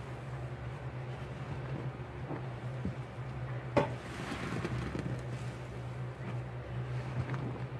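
A wet sponge squelches as hands press it.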